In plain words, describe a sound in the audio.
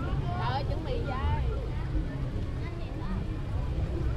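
A young woman crunches on a crispy snack.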